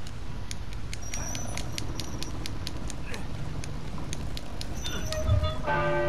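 A wheel turns with rapid ratcheting clicks.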